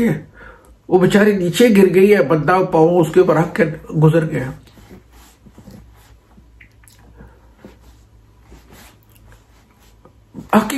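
An older man speaks calmly into a close microphone.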